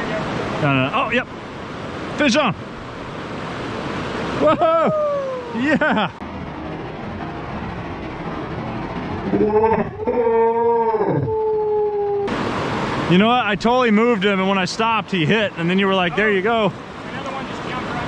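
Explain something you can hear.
A river rushes and gurgles over rocks.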